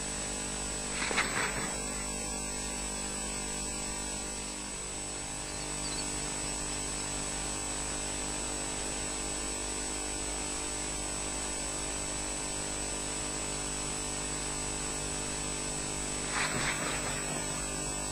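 A large bird's wings flap as it takes off from a nest.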